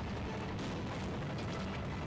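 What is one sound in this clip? An explosion booms in a video game.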